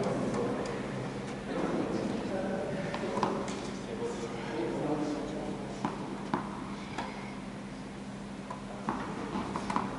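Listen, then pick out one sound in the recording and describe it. Tennis balls pop off rackets in a large echoing hall.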